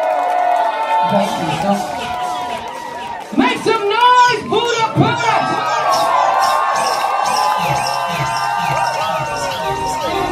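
Electronic dance music plays loudly through loudspeakers in a crowded hall.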